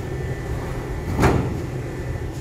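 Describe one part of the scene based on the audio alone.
A rubber sheet slaps down onto a metal table.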